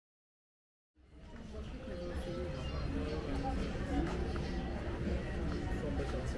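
Men and women chat quietly at nearby outdoor tables.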